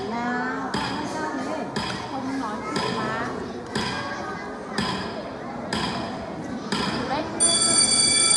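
A woman speaks with animation through a microphone and loudspeakers in an echoing hall.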